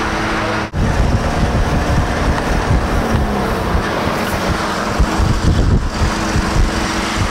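A vehicle engine rumbles as it drives slowly along a street.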